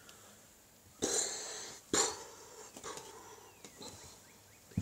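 A young woman puffs out air through her lips close by.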